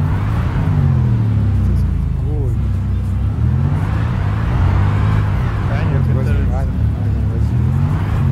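A car engine idles and revs up and down in a steady rumble.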